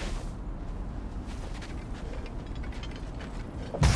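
Heavy footsteps crunch through snow.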